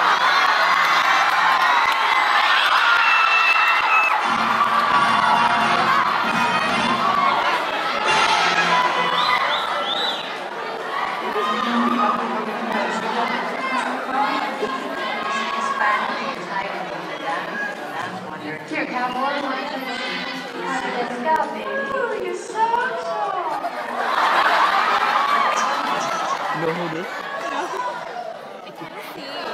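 Women sing on a stage through loudspeakers in a large hall.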